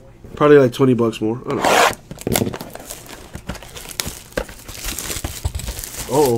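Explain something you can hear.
Plastic wrapping rustles and tears as a box is opened.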